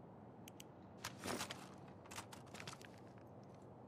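A rifle clicks and rattles as it is raised.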